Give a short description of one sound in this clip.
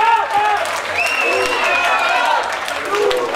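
A crowd whistles shrilly.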